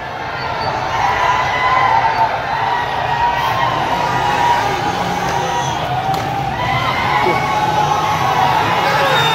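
A large crowd of men chants and shouts together in the distance, outdoors.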